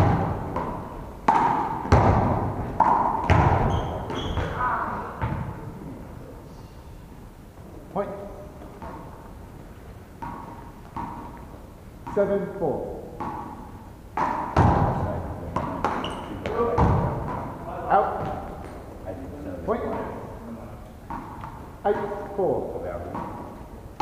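Men shout and call out to each other during a game, echoing in the hall.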